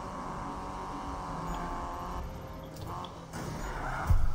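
A car engine revs high and strains.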